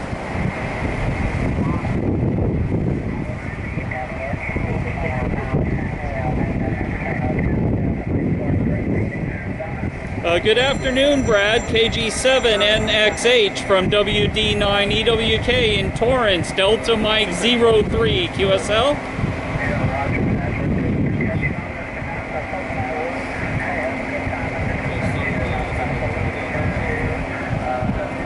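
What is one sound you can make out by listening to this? A middle-aged man talks steadily into a headset microphone outdoors.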